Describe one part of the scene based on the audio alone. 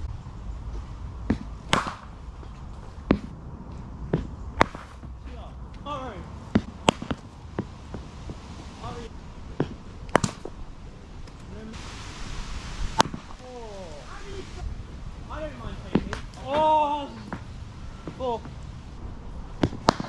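A cricket bat strikes a ball with sharp, hollow cracks, again and again.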